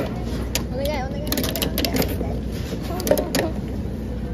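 A capsule toy machine's crank turns with clicking and rattling.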